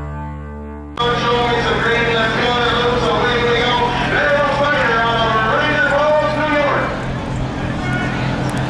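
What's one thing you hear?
A diesel truck engine idles and revs up and down.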